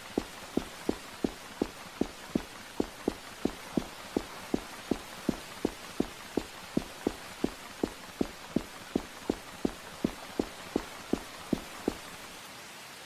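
Quick footsteps thud evenly on a carpeted floor.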